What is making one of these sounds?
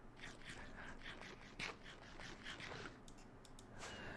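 A sword strikes a creature with short hits.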